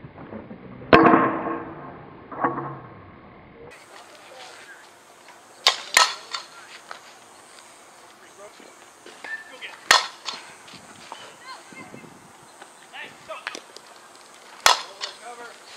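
A bat cracks sharply against a ball, several times.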